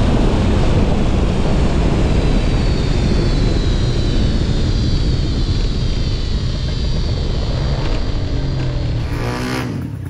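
A racing engine roars loudly close by.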